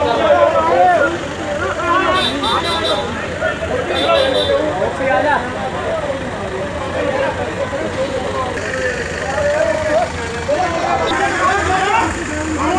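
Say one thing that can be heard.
A crowd of men shout and argue loudly nearby outdoors.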